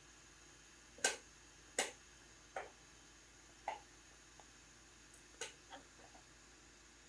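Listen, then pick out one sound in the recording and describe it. Patch cables click as they are plugged in.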